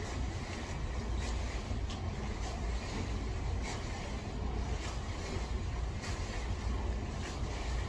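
Water splashes and laps in an indoor pool.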